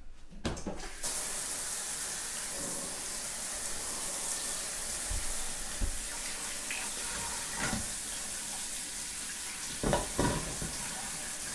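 Water sprays steadily from a shower head.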